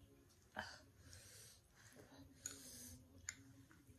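A young woman slurps noodles up close.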